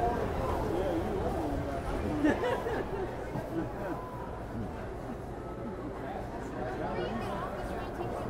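Carousel organ music plays.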